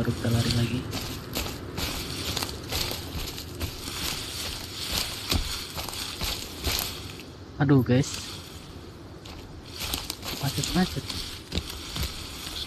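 Footsteps rustle through dry leaves and brush.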